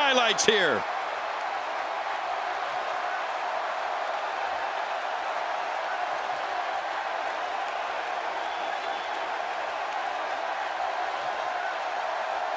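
A large crowd roars steadily in a big echoing arena.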